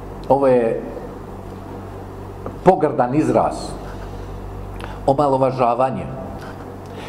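A middle-aged man speaks calmly into a microphone in short bursts.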